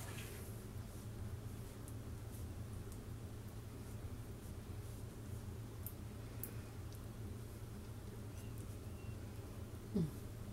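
A spoon scrapes softly against a baking dish.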